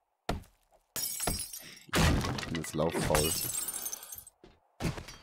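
Wooden boards splinter and crash apart.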